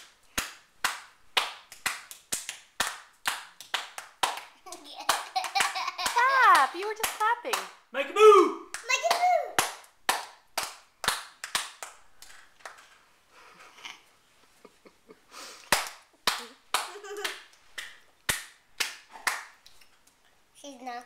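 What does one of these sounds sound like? A baby claps small hands together in quick pats.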